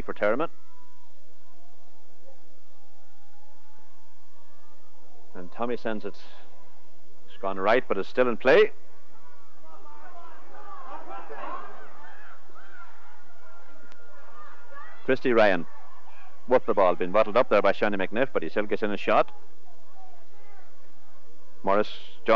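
Men shout across an open playing field.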